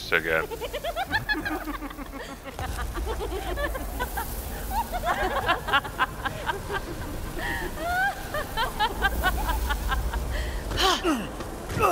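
A swarm of insects buzzes and flutters.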